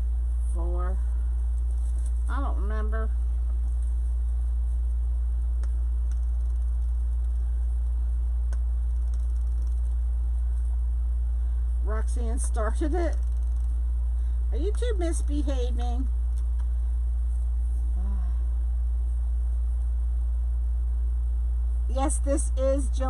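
Stiff plastic mesh rustles as it is handled.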